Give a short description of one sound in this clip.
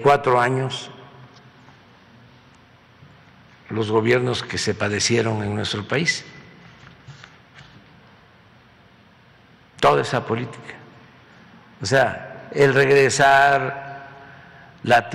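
An elderly man speaks calmly into a microphone in bursts, with pauses between phrases.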